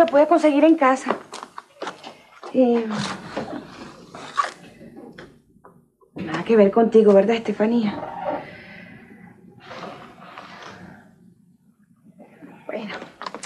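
A young woman answers calmly close by.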